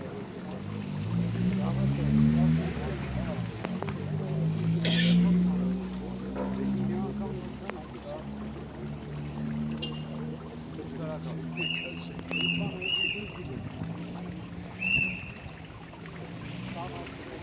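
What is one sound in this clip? Several men talk loudly nearby, outdoors.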